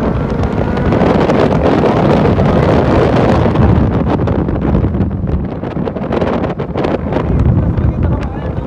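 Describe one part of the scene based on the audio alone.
A motorcycle engine roars close by, then fades as it pulls away.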